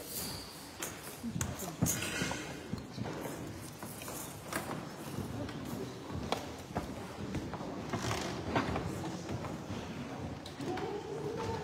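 People murmur and shuffle close by.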